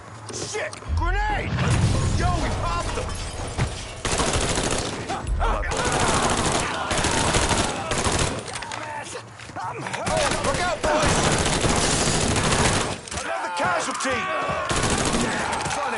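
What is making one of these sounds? Automatic rifles fire in loud, rapid bursts.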